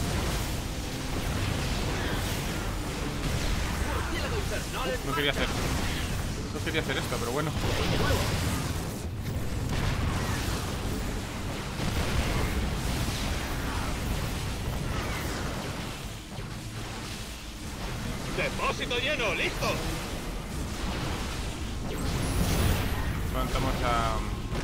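Laser guns zap and fire in rapid bursts.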